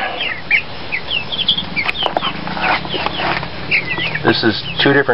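Chickens chirp and cheep in short high calls close by.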